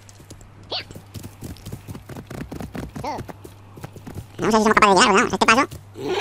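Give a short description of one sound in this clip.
A horse's hooves clop on rocky ground.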